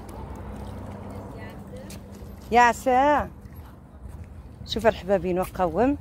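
Small waves lap gently against rocks.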